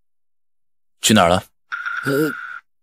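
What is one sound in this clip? A young man speaks sharply, close by.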